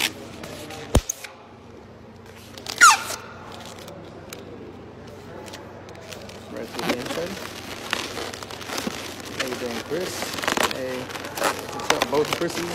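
Rubber balloons squeak and rub as they are twisted.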